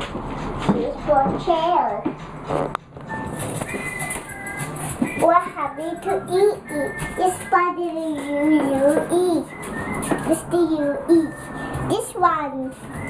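A young girl sings close by.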